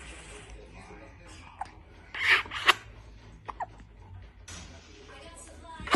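An infant coos.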